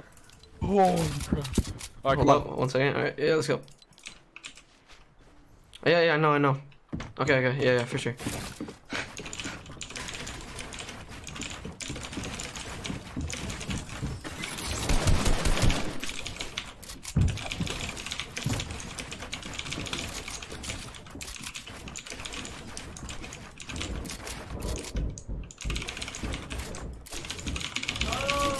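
A keyboard and mouse click rapidly.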